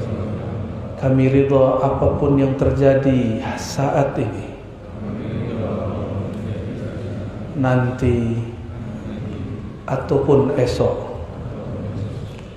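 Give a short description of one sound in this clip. A young man chants melodically into a close microphone, in long sustained phrases.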